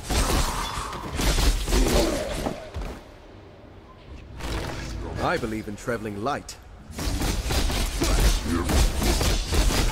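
Magic blasts and sword strikes crash and whoosh in a game battle.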